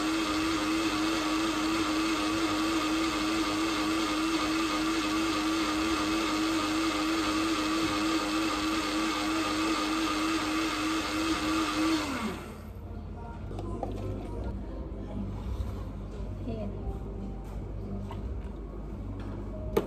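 Liquid pours into a glass.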